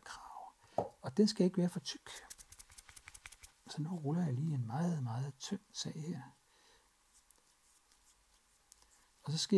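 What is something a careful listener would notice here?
Hands press and smooth soft clay.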